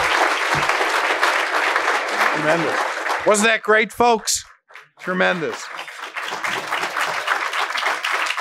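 An audience applauds steadily in a large room.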